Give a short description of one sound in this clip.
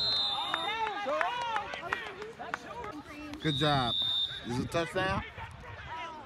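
Young women shout and cheer nearby, outdoors.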